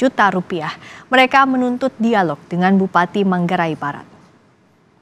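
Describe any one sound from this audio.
A young woman speaks clearly and calmly into a microphone.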